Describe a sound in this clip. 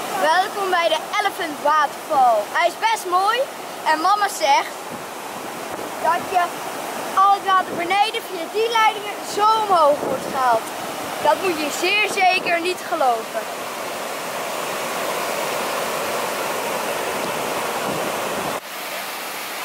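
A waterfall roars and rushes steadily.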